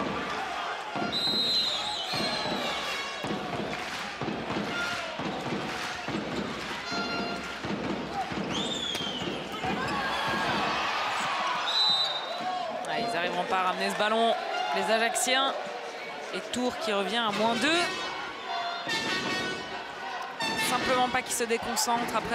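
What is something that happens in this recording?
A large crowd cheers and claps in an echoing hall.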